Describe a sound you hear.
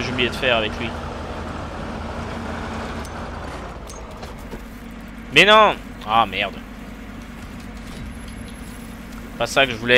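Water splashes around the truck's wheels.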